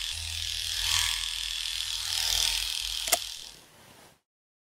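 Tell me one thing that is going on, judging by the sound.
Electric clippers buzz steadily through fur.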